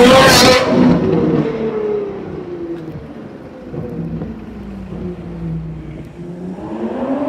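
A sports car engine rumbles steadily as the car drives slowly away.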